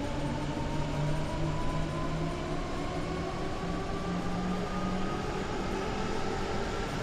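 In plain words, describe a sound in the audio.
An electric train engine whines steadily, rising slowly in pitch as the train speeds up.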